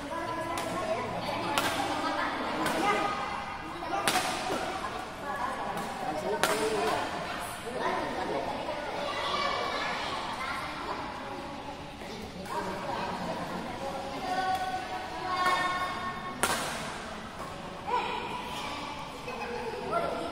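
Badminton rackets hit a shuttlecock with sharp pops.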